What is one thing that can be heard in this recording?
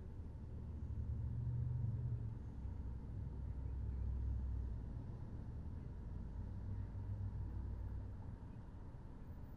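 Cars drive past nearby with a low rumble.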